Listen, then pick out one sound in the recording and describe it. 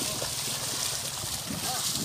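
Water splashes as a person wades through a shallow stream.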